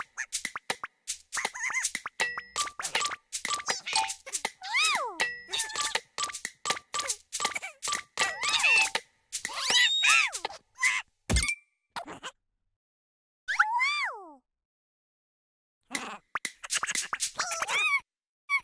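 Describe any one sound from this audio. Small balls bounce and boing playfully.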